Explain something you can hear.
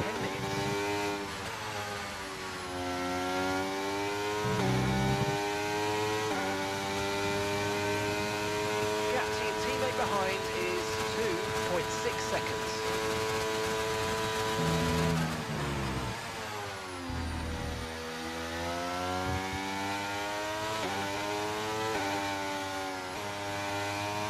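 A racing car engine whines loudly, rising in pitch and dropping sharply at each gear change.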